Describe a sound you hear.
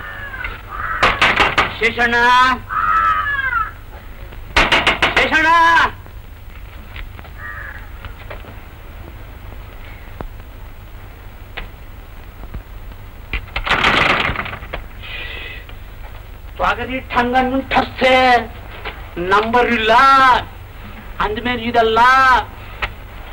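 An elderly man speaks with animation, in bursts, close by.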